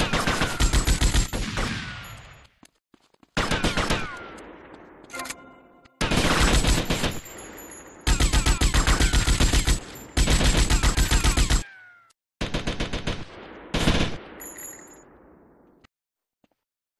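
An automatic gun fires in rapid bursts, echoing in a large hall.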